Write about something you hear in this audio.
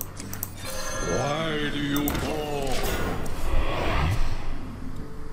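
A magical game chime and whoosh sound as a card is played.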